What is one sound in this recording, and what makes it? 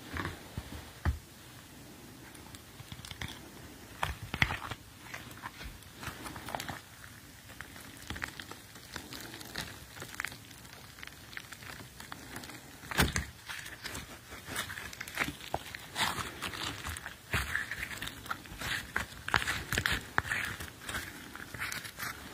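A young man talks quietly close by.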